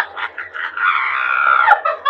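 Young women chatter and laugh nearby.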